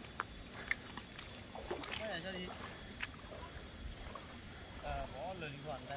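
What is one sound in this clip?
Water splashes as a boy wades through shallow floodwater.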